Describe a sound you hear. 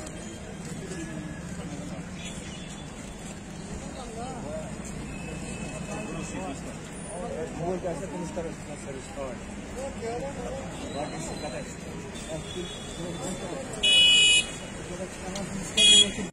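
Traffic rumbles steadily along a busy street.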